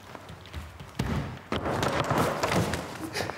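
A springboard bangs loudly under a jump.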